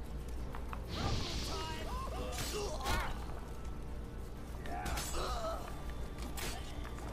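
Swords strike and clash in a fight.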